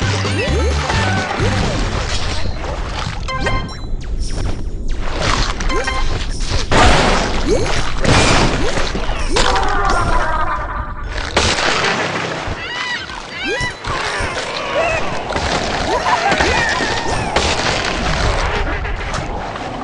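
Water splashes and churns.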